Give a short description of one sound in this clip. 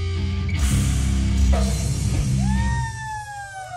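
A rock band plays loudly on a stage.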